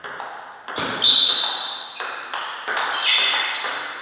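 A table tennis ball clicks off paddles and the table in a rally.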